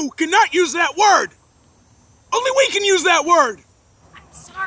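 A man growls and groans loudly, close by.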